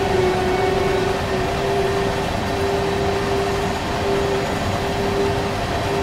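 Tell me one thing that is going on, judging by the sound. A train engine hums with a steady low drone.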